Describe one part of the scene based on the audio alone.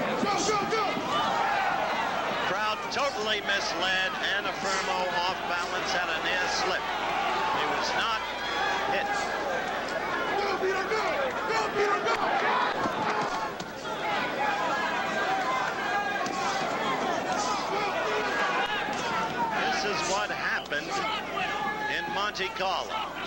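A large crowd murmurs and cheers in a big echoing hall.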